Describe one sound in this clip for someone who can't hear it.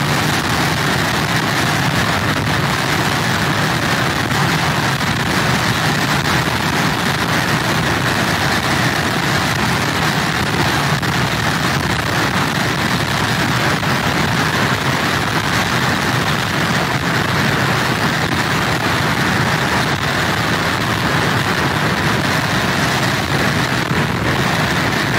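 Heavy surf crashes and roars against pier pilings.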